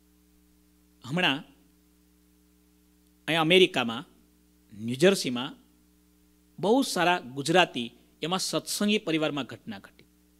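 A man speaks with animation into a microphone, in bursts with pauses.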